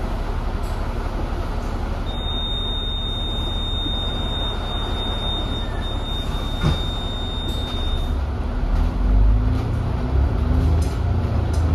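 A bus engine rumbles low and steady, growing louder as the bus pulls away.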